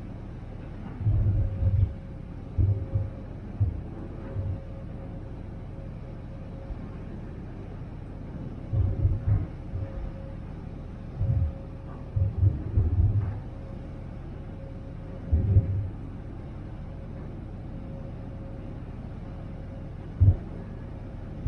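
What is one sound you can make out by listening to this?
Wind gusts buffet loudly outdoors.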